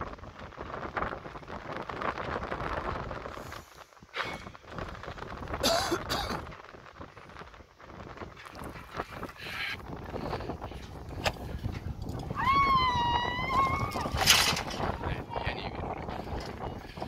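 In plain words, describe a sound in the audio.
Wind blows hard against the microphone outdoors.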